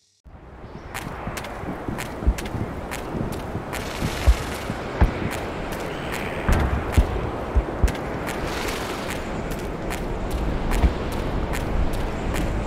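Footsteps crunch on sand and gravel.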